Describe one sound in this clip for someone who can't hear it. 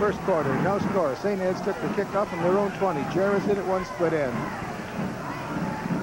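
A large crowd cheers from the stands outdoors.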